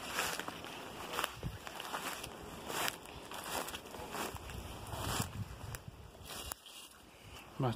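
Footsteps crunch through frozen grass and light snow outdoors.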